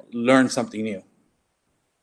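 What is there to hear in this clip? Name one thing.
A man speaks briefly over an online call.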